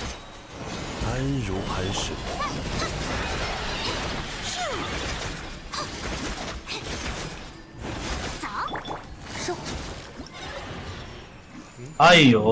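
Game battle effects crackle and boom loudly.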